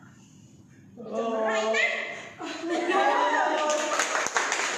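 A young woman laughs and talks cheerfully close by.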